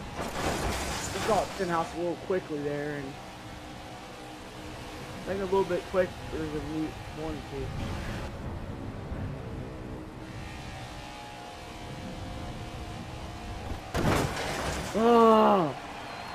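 A race car scrapes along a wall.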